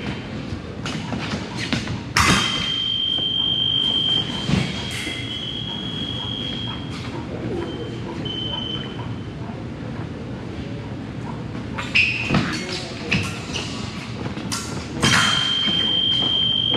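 Fencing blades clash and scrape together.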